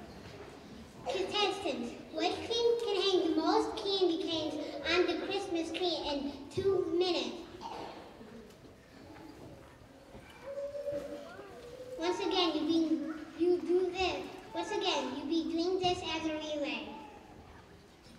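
A young boy sings through a microphone in a large hall.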